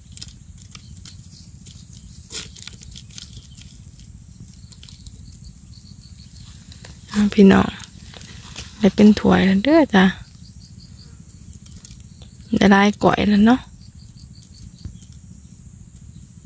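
Small shrimp patter and rustle as they are shaken from a net into a plastic bucket.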